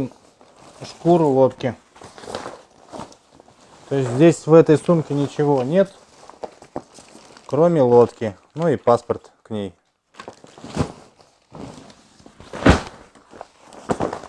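Plastic sheeting rustles and crinkles as it is unfolded.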